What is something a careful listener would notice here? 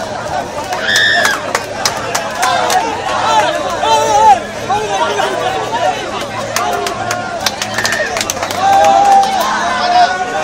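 Men clap their hands in a crowd.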